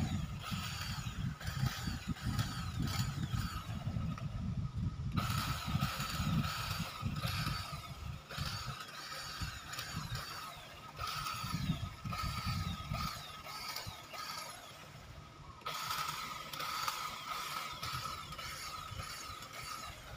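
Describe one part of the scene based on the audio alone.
Small electric shears whir and snip as they trim a low hedge.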